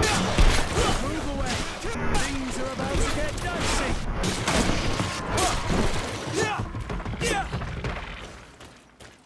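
Blades strike and clash with sharp hits.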